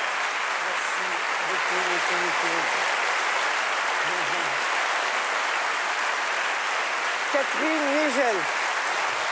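People in the audience cheer and whoop loudly.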